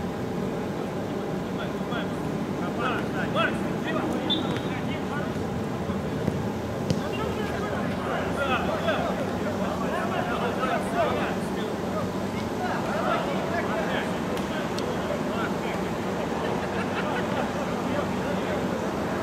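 A ball thuds off a player's foot.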